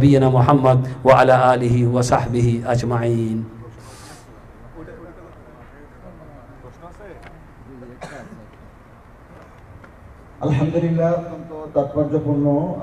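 An elderly man speaks calmly into a microphone, his voice amplified in the room.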